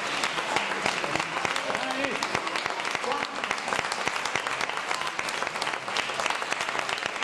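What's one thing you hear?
A crowd claps and applauds loudly.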